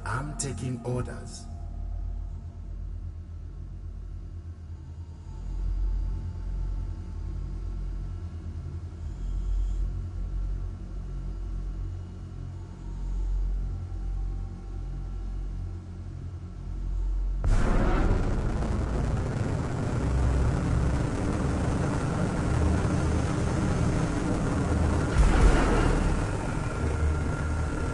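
A spaceship engine rumbles low and steady, swelling suddenly louder partway through.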